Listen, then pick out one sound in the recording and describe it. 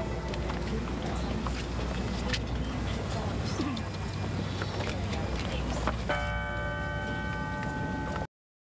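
A crowd of men and women murmurs and chatters outdoors.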